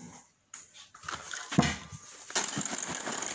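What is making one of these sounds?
A metal bowl clanks as it is set down.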